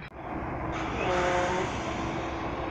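A train horn sounds briefly.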